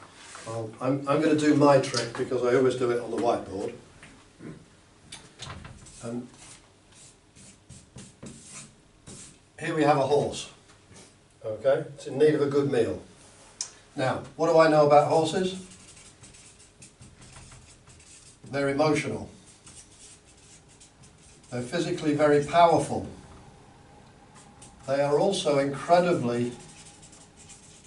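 A middle-aged man speaks calmly, in bursts with pauses.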